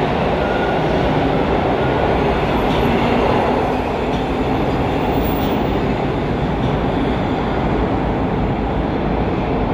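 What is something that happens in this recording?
A subway train rumbles and rattles as it pulls out and moves away.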